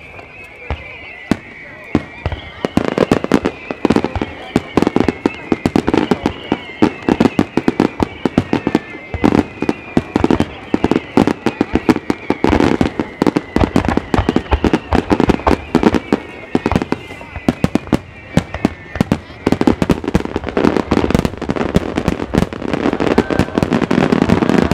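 Fireworks bang and boom in rapid succession, echoing across open space.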